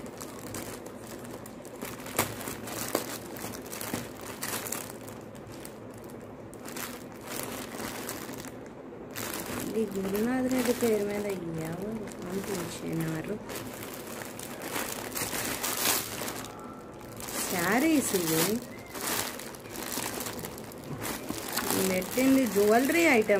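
A plastic package crinkles and rustles as it is torn open and handled.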